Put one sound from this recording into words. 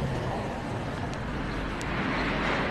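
A car drives past on the street nearby.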